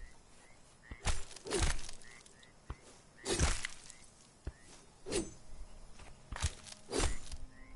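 A blade chops repeatedly into a carcass.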